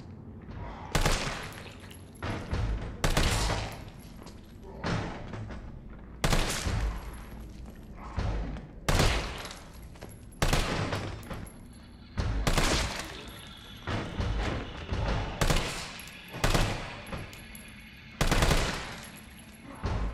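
A rifle fires single loud shots that echo down a hallway.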